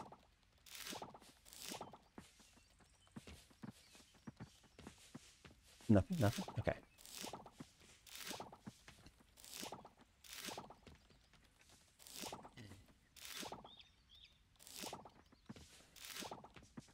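Short rustling swishes repeat steadily as crops are picked.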